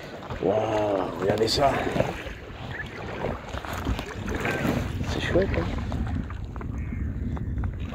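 A paddle dips and splashes in the water.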